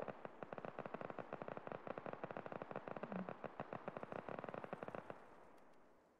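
Automatic rifles fire in rapid, steady bursts.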